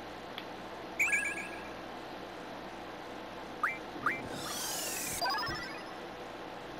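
Short electronic beeps and chimes sound from a game menu.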